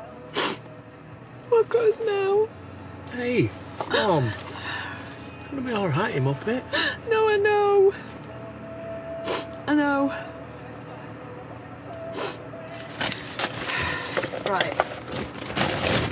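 A young woman sobs and speaks tearfully, close by.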